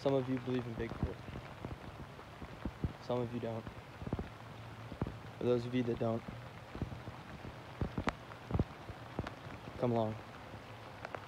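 A young man speaks quietly and close in short bursts.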